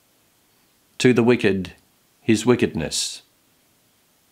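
A middle-aged man speaks calmly and close to a microphone, in short phrases.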